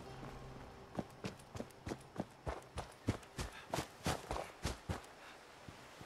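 Footsteps crunch steadily on gravel and dry leaves.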